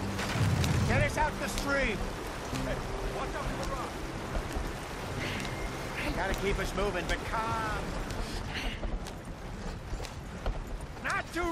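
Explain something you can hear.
A horse-drawn wagon rumbles and creaks along a dirt track.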